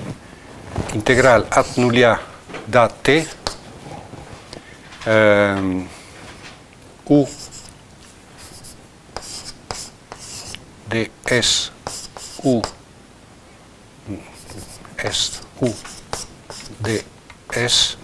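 An elderly man lectures calmly.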